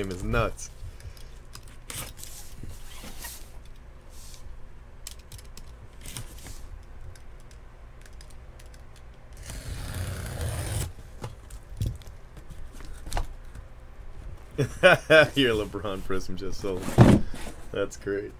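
A cardboard box scrapes and rustles.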